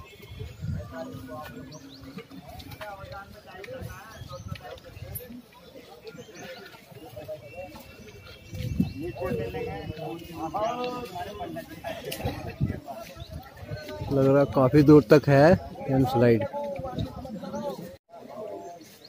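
Several men talk loudly outdoors, close by.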